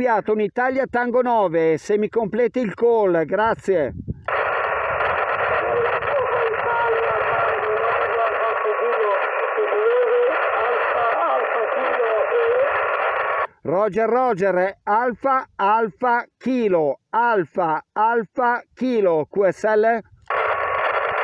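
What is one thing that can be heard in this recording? A man speaks closely into a radio microphone in short bursts.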